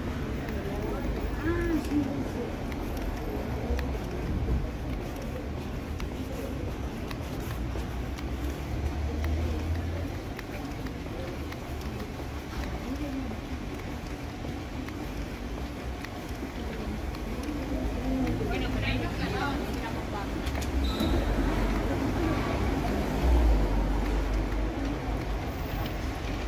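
Footsteps of passersby tap on a pavement outdoors in a city street.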